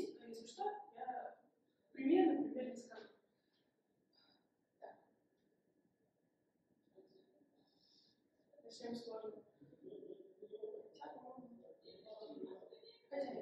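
A young woman speaks calmly, pausing between phrases.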